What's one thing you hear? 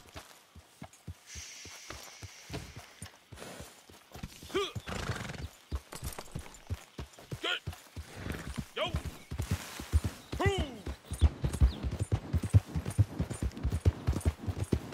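Horse hooves thud steadily on grass and dirt, growing faster and louder.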